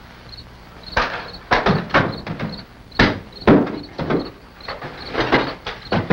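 Furniture bangs and scrapes.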